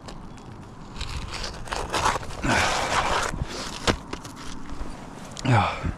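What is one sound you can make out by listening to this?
Gloved hands scrape and rustle against roofing shingles.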